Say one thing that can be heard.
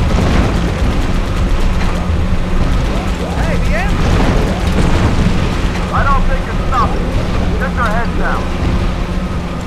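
Energy weapons fire in short bursts.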